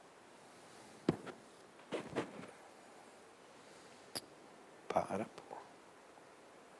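A man speaks a few short words close to a microphone, with long pauses.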